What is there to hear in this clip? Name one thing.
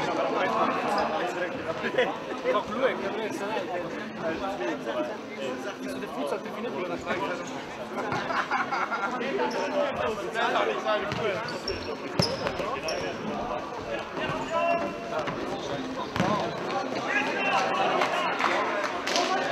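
A crowd of spectators chatters in a large echoing sports hall.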